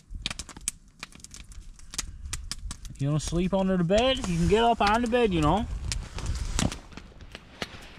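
A dog rustles through dry twigs and needles.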